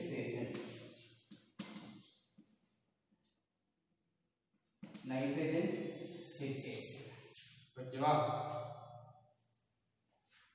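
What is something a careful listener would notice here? A man speaks clearly and calmly, as if teaching.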